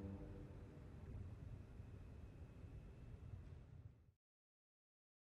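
A small mixed choir sings together in a reverberant hall and the singing fades away.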